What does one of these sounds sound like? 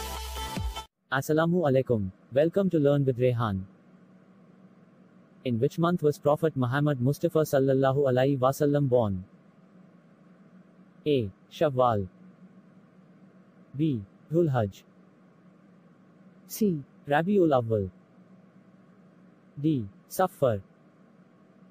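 A young man speaks calmly through a microphone, reading out.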